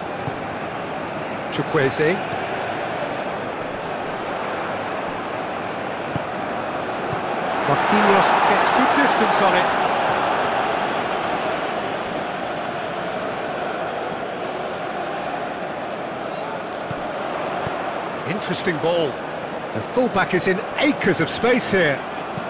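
A large stadium crowd roars steadily, swelling for a few seconds before settling again.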